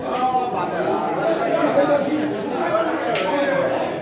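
A pool cue strikes a ball with a sharp click.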